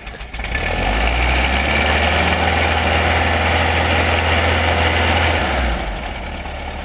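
An air-cooled flat-four engine of a VW bus revs hard.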